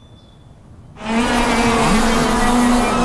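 Go-kart engines roar loudly as the karts race past close by.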